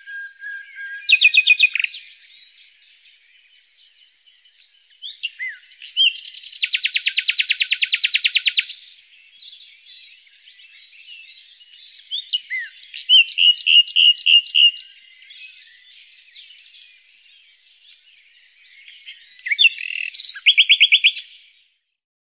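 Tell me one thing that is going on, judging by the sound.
A nightingale sings loud, rapid trilling phrases close by.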